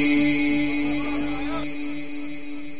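A man chants through a microphone in a long echo that fades away.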